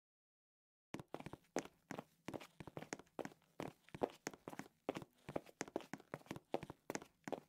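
Footsteps tap quickly on a hard tiled floor.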